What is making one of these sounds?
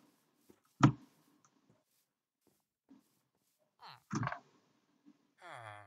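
Footsteps fall softly on grass.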